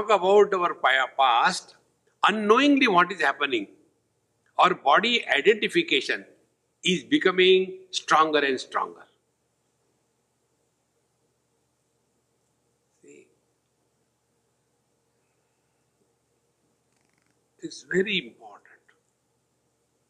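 An elderly man speaks calmly into a close microphone, with long pauses.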